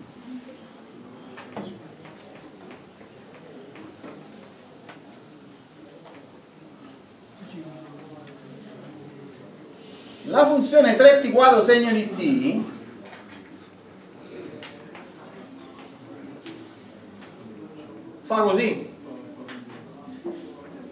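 An elderly man lectures calmly, heard from a distance.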